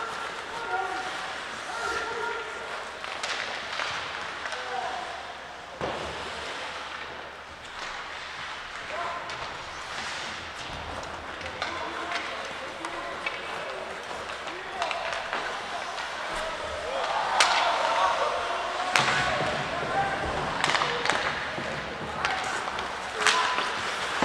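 Skate blades scrape and hiss across the ice in a large echoing rink.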